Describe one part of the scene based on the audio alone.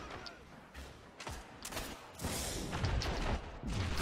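Rapid gunfire crackles and bangs.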